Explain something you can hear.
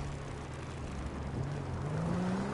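A car engine approaches and revs up.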